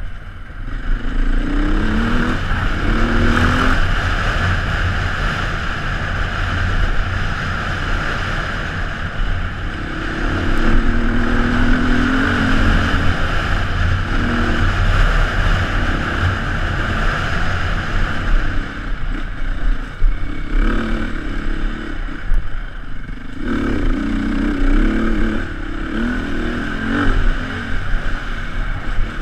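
A motorbike engine roars and revs up and down close by.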